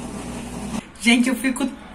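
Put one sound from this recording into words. A young woman laughs and speaks cheerfully close to the microphone.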